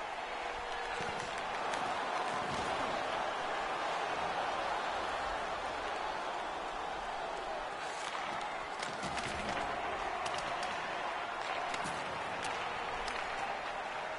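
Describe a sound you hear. Sticks clack against a puck.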